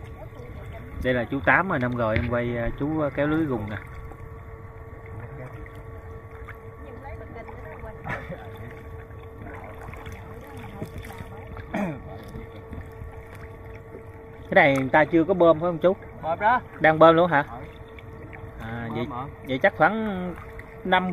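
Water swishes gently as a man wades through a river.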